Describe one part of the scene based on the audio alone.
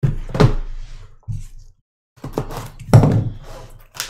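Plastic wrap crinkles as it is torn from a box.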